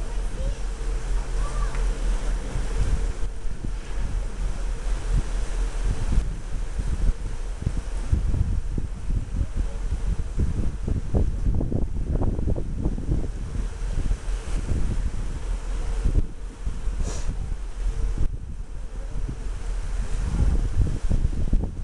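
Wind gusts buffet the microphone high over open sea.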